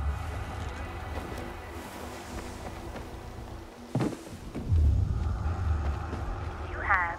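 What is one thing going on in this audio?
Footsteps run over grass and then a hard floor.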